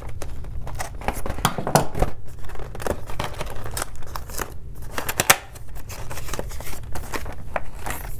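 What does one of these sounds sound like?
A cardboard box rustles and scrapes as fingers pull its flap open.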